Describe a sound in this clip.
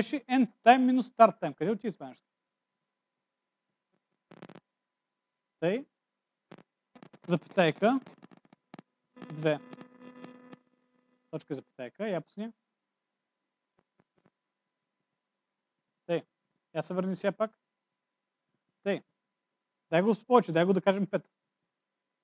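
A man explains calmly in short bursts with pauses.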